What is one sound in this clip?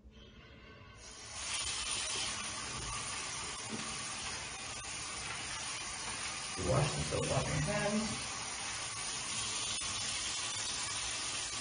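Water runs from a tap and splashes into a sink.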